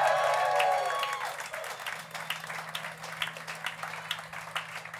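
Drums and cymbals beat a fast rhythm.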